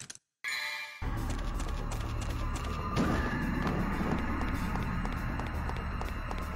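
Dark, rumbling game music plays loudly.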